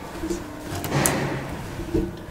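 A lift call button clicks as a finger presses it.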